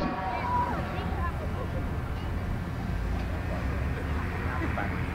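Tank engines rumble low and steady.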